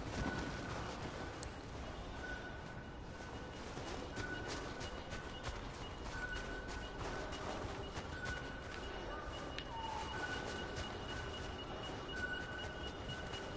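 Wind blows steadily through falling snow.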